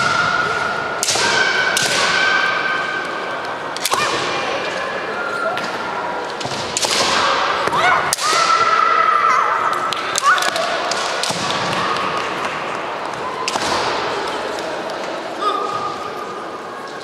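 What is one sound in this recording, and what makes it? Fencers let out loud, drawn-out shouts as they strike.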